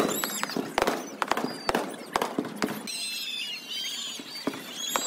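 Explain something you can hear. Fireworks crackle and bang overhead outdoors.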